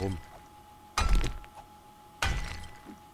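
A pickaxe strikes stone with sharp knocks.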